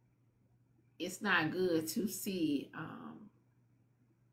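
A young woman speaks briefly with animation, close to a microphone.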